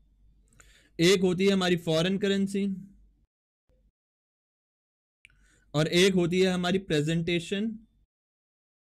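A man speaks calmly and clearly into a close microphone, in short bursts.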